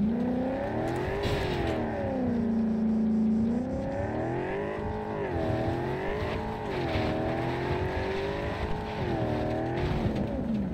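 A truck engine roars and revs up and down.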